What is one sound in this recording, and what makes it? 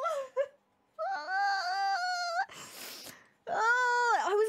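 A young woman laughs loudly into a close microphone.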